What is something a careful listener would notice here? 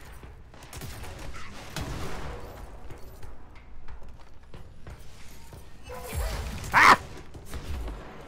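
Explosions boom and debris clatters.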